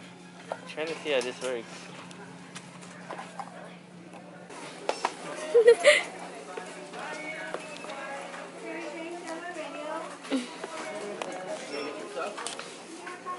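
A young woman talks casually close by.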